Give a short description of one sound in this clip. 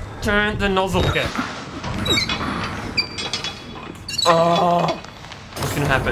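A heavy valve wheel creaks as it turns.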